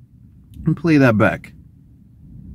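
A man speaks briefly and loudly, close to a microphone.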